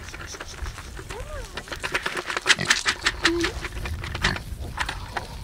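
Feed rattles as it is shaken out of a plastic bucket onto gravel.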